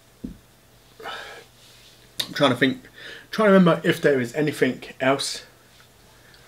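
A man talks calmly, close by.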